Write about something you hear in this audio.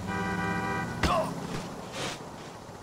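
A motorbike crashes against a wall with a thud.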